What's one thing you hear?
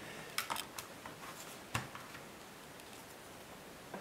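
A laptop battery snaps out of its slot.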